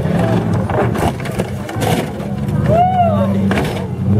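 Metal crunches as a truck rolls off a crushed car.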